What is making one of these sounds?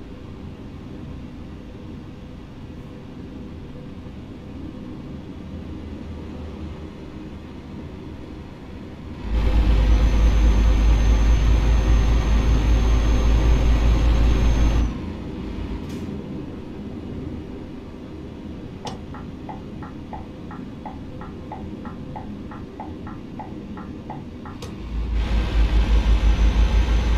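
A truck engine hums steadily, swelling to a loud drone for a few seconds at a time.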